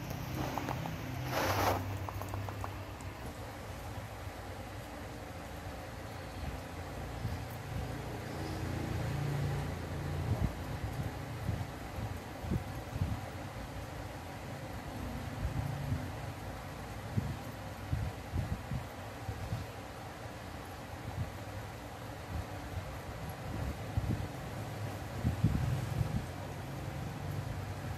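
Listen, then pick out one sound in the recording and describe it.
Monkeys' fingers rustle softly through hair.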